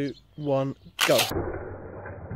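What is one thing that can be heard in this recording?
A spring launcher snaps as toy cars are released.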